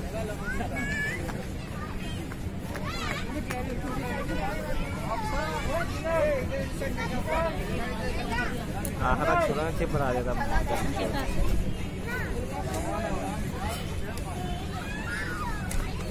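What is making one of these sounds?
Children chatter and shout nearby.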